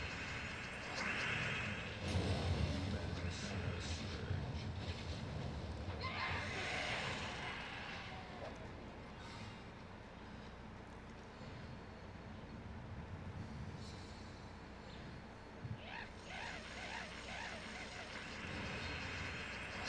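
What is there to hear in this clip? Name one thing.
Game sound effects chime and whoosh during play.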